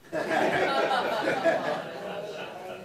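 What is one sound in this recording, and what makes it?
An audience laughs.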